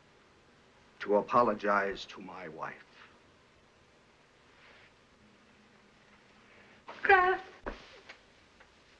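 A woman speaks tearfully, close by.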